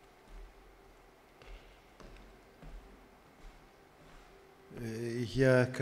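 Footsteps thud softly across a wooden stage.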